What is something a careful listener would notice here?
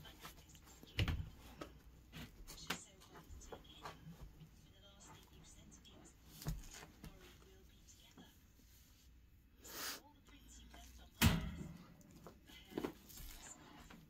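A dog rustles and paws through soft blankets.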